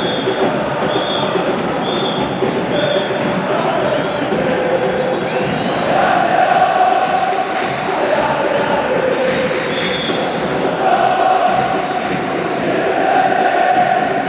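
A huge stadium crowd chants and sings loudly in unison.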